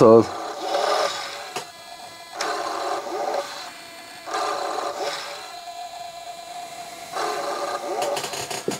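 A small motor whirs in repeated bursts as a tape mechanism turns.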